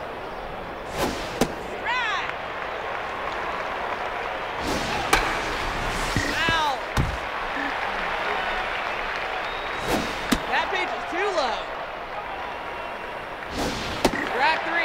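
A softball smacks into a catcher's mitt.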